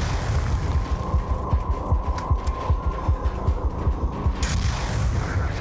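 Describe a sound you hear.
A large explosion booms and rumbles.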